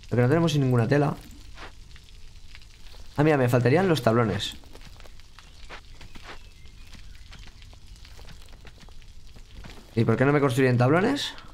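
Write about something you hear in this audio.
A young man talks calmly and closely into a microphone, in short bursts.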